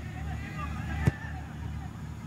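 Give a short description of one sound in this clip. A football is struck hard with a sharp thud.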